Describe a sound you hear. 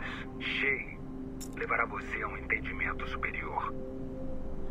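A man speaks casually into a nearby microphone.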